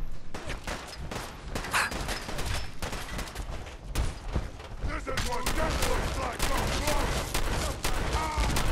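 Heavy metal footsteps clank steadily.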